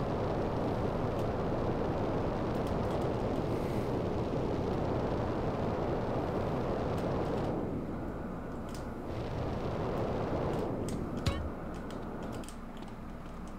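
A jetpack roars with a steady rushing noise.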